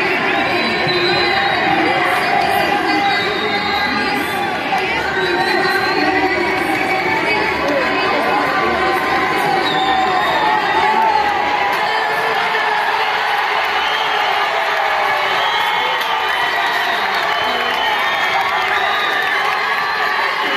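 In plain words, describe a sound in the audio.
A crowd of spectators chatters and calls out nearby, outdoors in a large open stadium.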